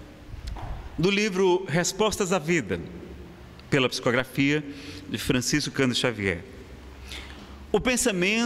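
A man speaks calmly through a microphone in an echoing hall.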